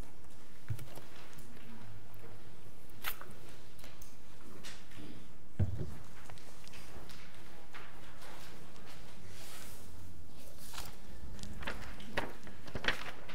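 A man speaks faintly at a distance in an echoing hall.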